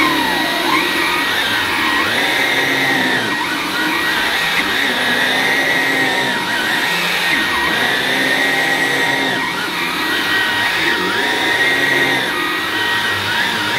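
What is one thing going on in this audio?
A cordless vacuum cleaner whines steadily as it runs.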